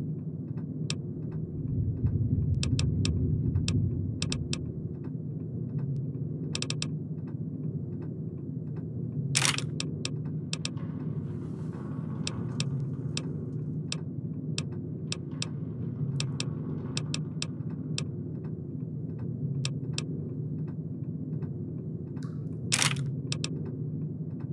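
Short menu clicks tick rapidly as a list scrolls.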